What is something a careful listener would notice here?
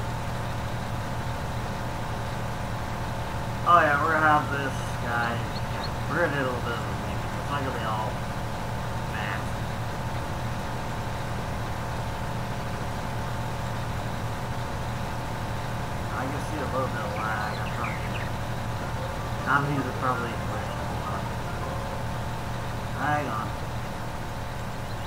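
A tractor engine drones steadily.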